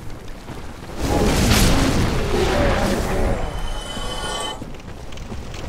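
A creature bursts into roaring flames.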